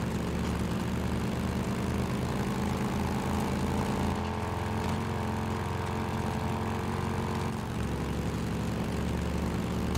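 A motorcycle engine rumbles steadily as it rides along.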